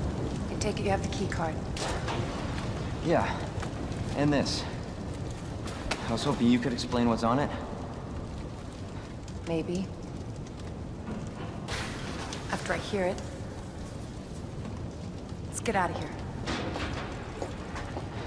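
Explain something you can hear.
A woman speaks calmly and coolly, close by.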